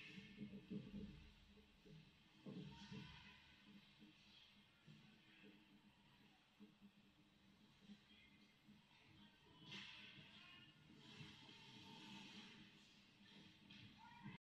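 Skates scrape and hiss across ice in a large echoing hall.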